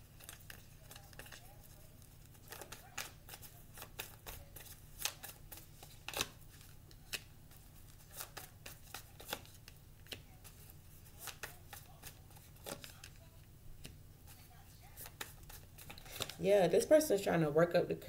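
Playing cards are laid down and slide with soft taps on a table.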